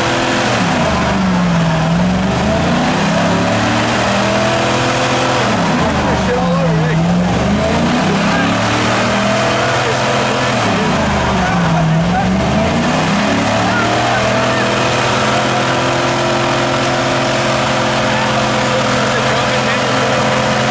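Tyres squeal as they spin on the road.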